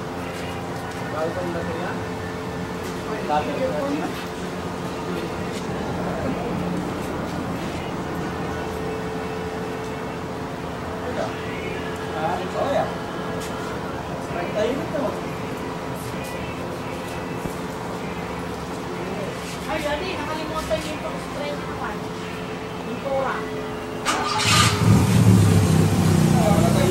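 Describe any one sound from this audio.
A man talks casually close by.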